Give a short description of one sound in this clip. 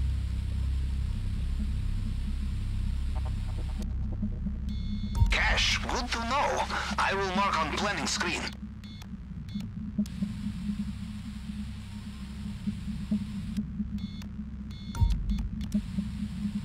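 Electronic static hisses steadily.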